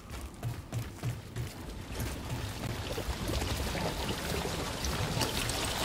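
Footsteps thud quickly on a metal grating, then on grass.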